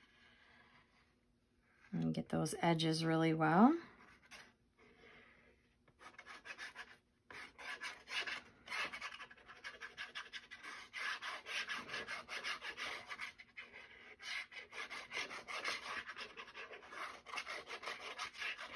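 A plastic glue bottle squeezes and squelches as glue is dabbed on.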